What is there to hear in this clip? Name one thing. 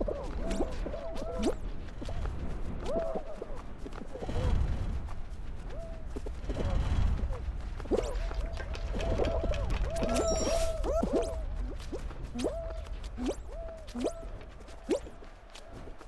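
Cartoonish boing sound effects bounce again and again as small figures jump.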